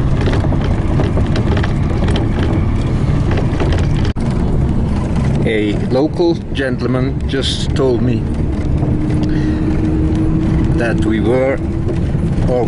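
A vehicle's engine and tyres rumble steadily on the road.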